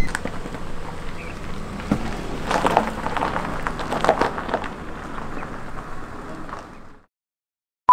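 A car drives away over gravel.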